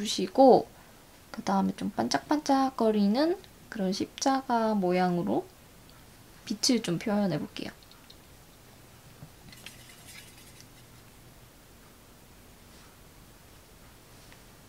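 A brush brushes softly on paper.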